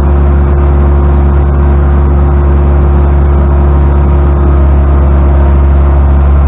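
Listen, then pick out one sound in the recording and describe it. A loader's diesel engine idles with a loud, steady rumble close by.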